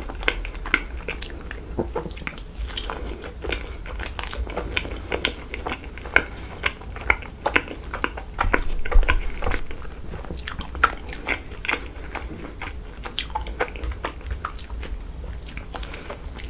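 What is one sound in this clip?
A young man bites into soft rice cakes close to a microphone.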